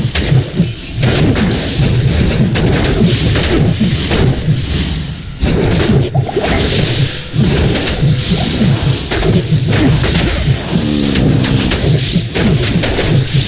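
Weapons clash and strike repeatedly.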